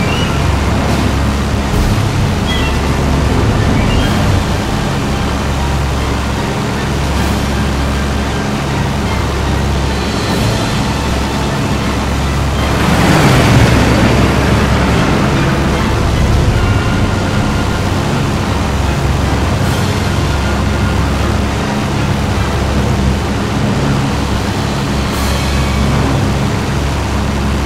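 A propeller engine drones steadily and loudly.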